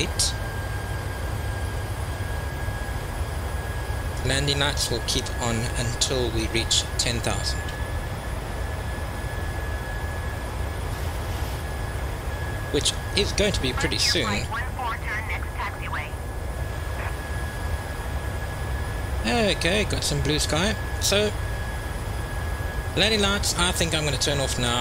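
A jet airliner's engines drone steadily in flight.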